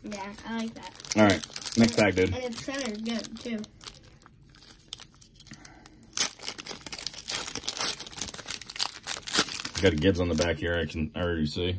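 A foil wrapper crinkles and tears as it is pulled open by hand.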